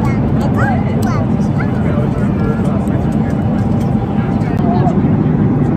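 A small girl babbles softly.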